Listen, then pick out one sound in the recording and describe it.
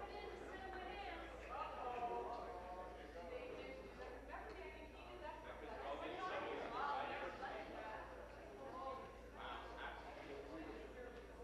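A man reads out steadily through a microphone in a large hall.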